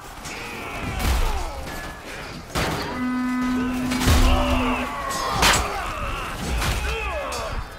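Metal weapons clash and strike in a melee battle.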